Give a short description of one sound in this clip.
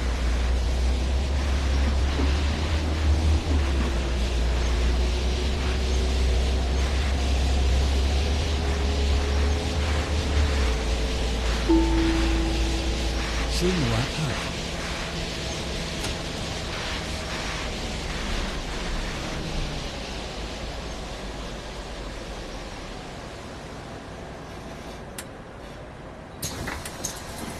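A bus engine hums steadily, then eases off.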